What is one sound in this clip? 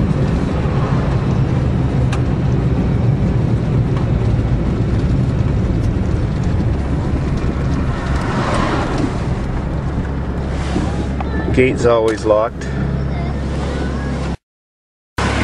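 Tyres roll on a road surface.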